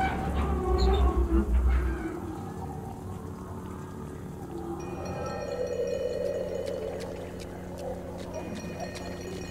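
A lightsaber hums steadily.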